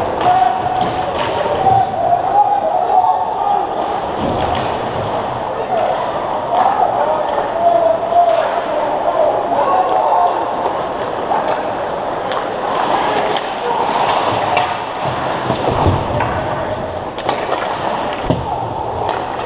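Skates scrape and carve on ice in a large echoing rink.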